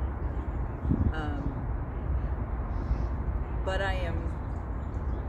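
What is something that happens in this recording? A middle-aged woman speaks calmly nearby.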